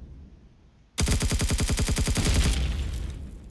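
A rapid-fire gun shoots a quick burst of shots.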